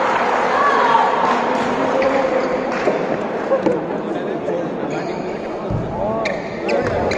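A badminton racket strikes a shuttlecock.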